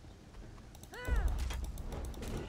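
A weapon strikes a creature with a heavy thud.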